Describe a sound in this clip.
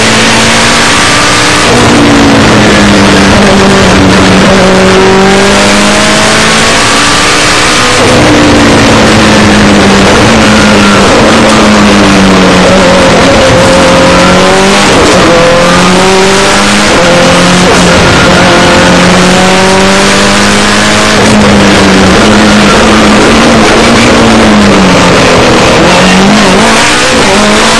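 A rally car engine roars loudly, revving up and down through the gears.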